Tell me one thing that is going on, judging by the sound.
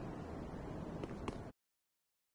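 Heavy metal footsteps clank on stone.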